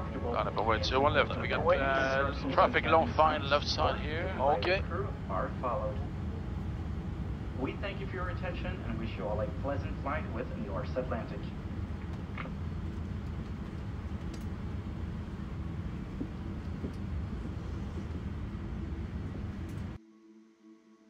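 A steady low engine rumble fills an aircraft cockpit.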